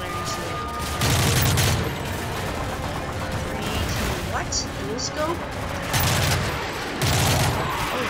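A rifle fires in short, loud bursts.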